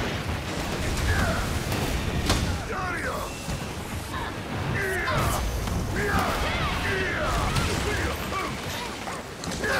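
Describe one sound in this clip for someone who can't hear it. A large monster shrieks and screeches.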